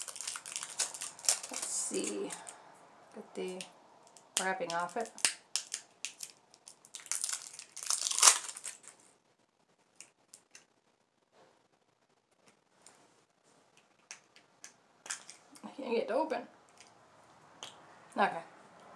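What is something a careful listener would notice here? Packaging crinkles and rustles in a woman's hands.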